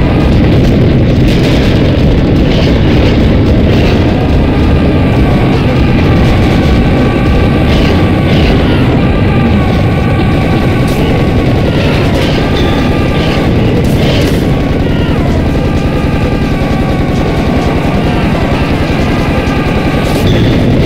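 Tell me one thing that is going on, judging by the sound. A heavy gun fires in rapid, rattling bursts.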